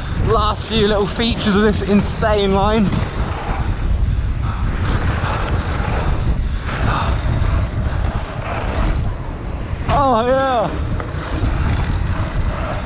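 Bike tyres crunch and roll over a loose dirt trail.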